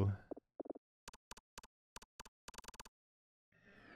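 Short electronic menu blips tick in quick succession.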